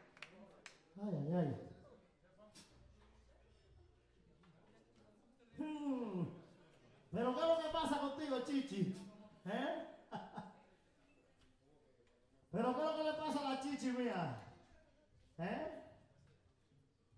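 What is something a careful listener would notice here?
A man sings loudly into a microphone over a loudspeaker, in bursts with pauses.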